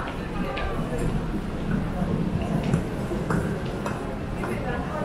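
A loaded trolley rumbles as it is pushed across the floor.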